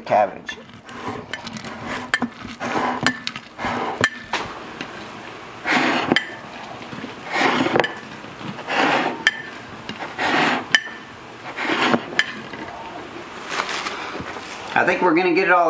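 Cabbage crunches and squeaks as a fist packs it down into a glass jar.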